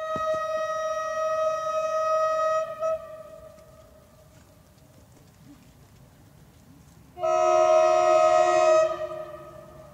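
A train horn blares loudly from a distance.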